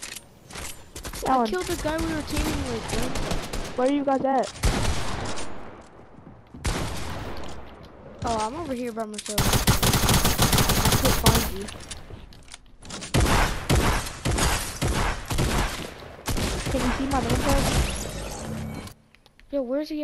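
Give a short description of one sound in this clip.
Rapid gunfire and clattering building noises crackle in a video game.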